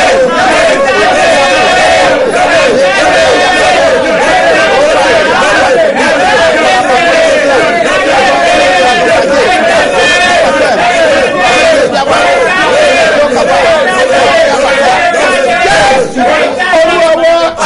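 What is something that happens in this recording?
A man sings loudly with passion through a microphone.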